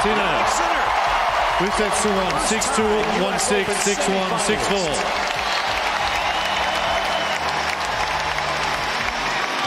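A large crowd cheers and claps in a big open arena.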